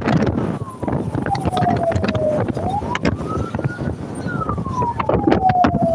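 Wind rushes loudly past a moving car.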